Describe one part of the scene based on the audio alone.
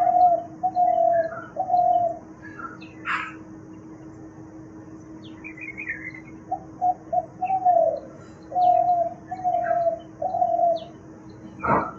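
A spotted dove gives soft, low coos in short phrases.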